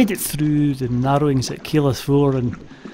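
A paddle dips and splashes in calm water.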